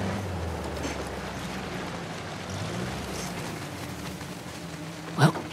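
A jeep engine rumbles steadily as it drives slowly.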